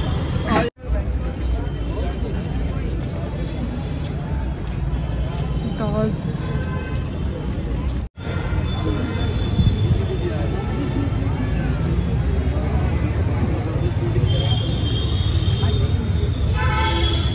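Men and women talk nearby in a crowd.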